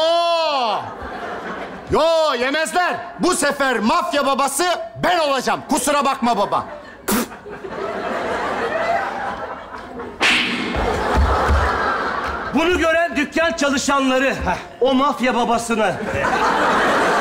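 A second man speaks back with animation.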